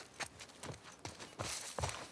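Straw and debris crunch underfoot.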